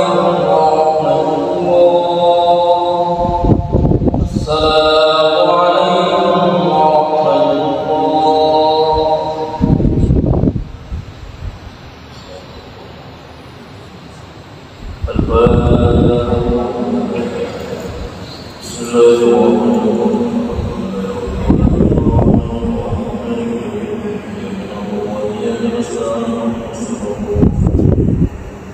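A man chants into a microphone, echoing through a large hall.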